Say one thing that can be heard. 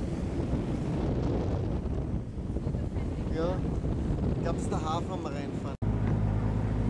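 Wind blows across the microphone.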